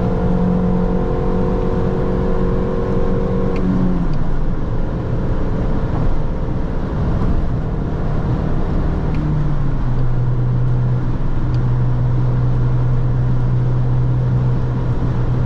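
Tyres roar on a road at speed.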